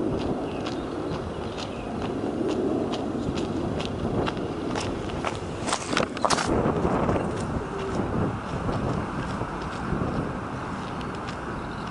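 A man walks with footsteps squelching and crunching on a wet, muddy path.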